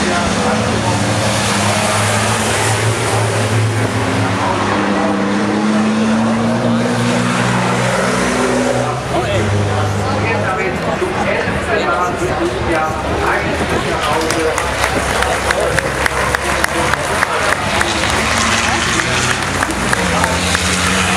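Racing truck engines roar loudly as the trucks speed past.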